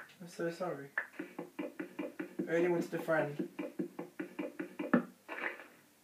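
Rapid tapping of a block being broken plays through a speaker.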